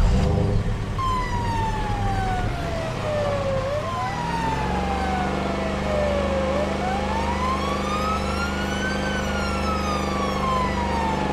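A police siren wails slowly, rising and falling.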